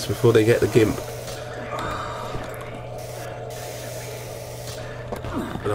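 A cutting tool hisses and crackles against a metal chain.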